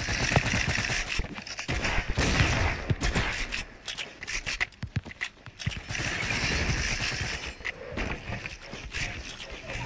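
Wooden building pieces clack quickly into place in a video game.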